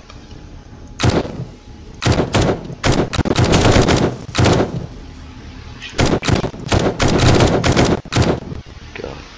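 A rifle fires several loud shots in quick bursts.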